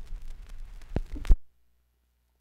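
A stylus thumps as the tonearm lifts off a record.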